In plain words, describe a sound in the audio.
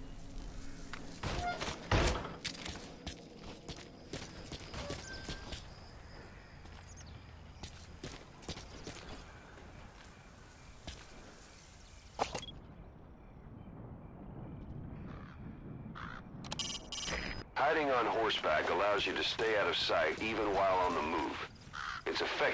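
Soft footsteps shuffle on dirt.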